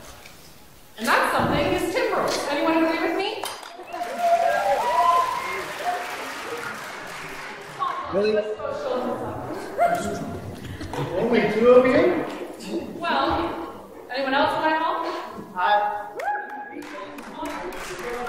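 A woman speaks calmly into a microphone, heard over loudspeakers in a large hall.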